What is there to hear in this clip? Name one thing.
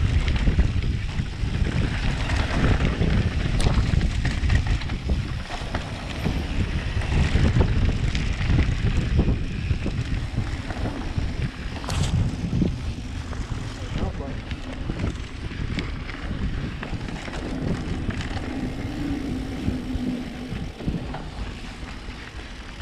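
Bike tyres crunch and rattle over a dirt trail.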